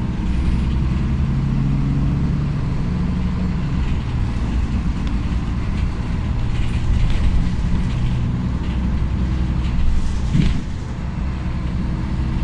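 A bus engine hums steadily from inside while driving.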